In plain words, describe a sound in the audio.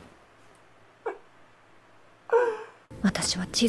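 A young man groans through his hands.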